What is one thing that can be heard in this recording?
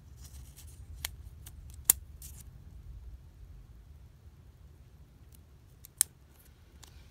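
Fingers tap and click against paper.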